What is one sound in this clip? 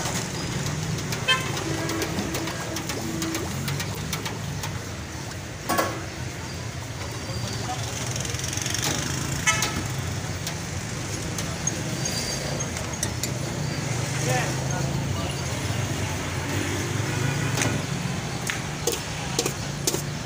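A metal ladle scrapes and clinks against a metal pot.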